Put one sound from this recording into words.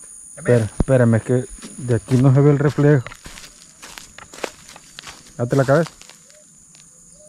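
Water sloshes gently as a person wades.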